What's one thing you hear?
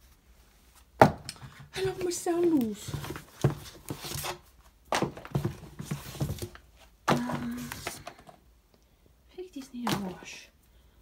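Shoes knock and clatter against a wooden shelf as they are handled.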